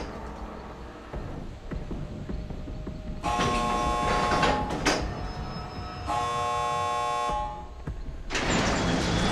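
Metal parts rattle and clank as a machine is worked on by hand.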